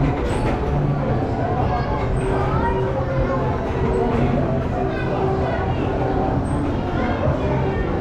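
A carousel turns with a steady mechanical rumble.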